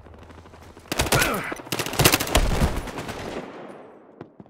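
Gunshots crack loudly nearby.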